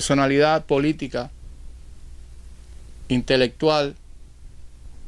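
An elderly man speaks calmly and close up, in short phrases with pauses.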